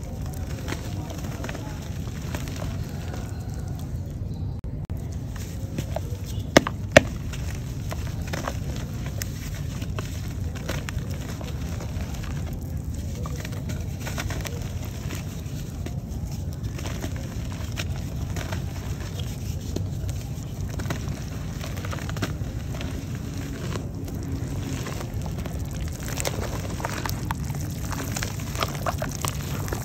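Wet clay crumbles and squelches between hands in water.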